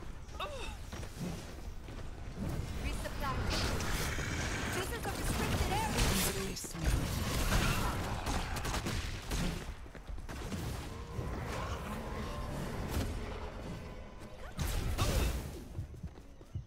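Magic blasts and energy bursts crackle and whoosh in a game fight.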